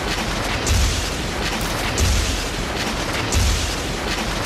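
A web shoots out with a sharp thwip.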